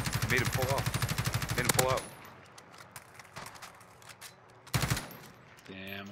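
A rifle magazine clicks into place during a reload.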